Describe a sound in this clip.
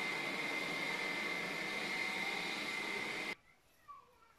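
A robot vacuum cleaner whirs with a steady high hum.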